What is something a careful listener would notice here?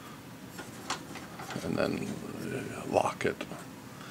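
A knob on a machine clicks as it is turned.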